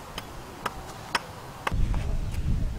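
An axe chops wood in sharp knocks.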